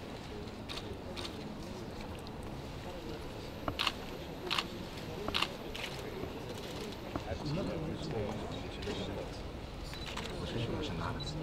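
A crowd of men and women murmur quietly in a large room.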